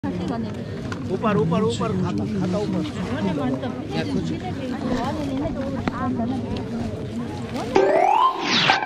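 A crowd of people murmur and chatter nearby.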